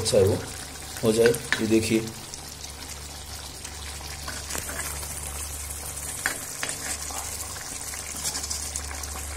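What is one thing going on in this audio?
Sauce sizzles and bubbles softly in a pan.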